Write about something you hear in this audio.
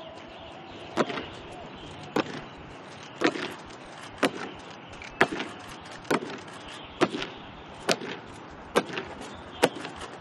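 Boots stamp in step on hard ground as soldiers march.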